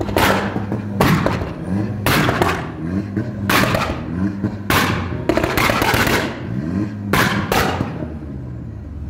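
A car exhaust pops and bangs loudly in bursts.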